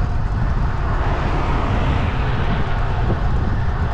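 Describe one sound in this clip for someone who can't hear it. A car passes by on a nearby road.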